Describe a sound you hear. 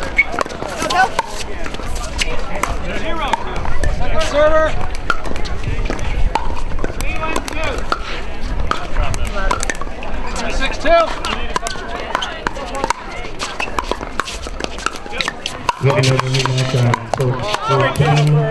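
Paddles pop sharply against a plastic ball.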